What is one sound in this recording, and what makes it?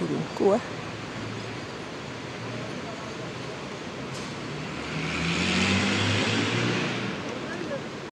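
A truck engine rumbles slowly nearby.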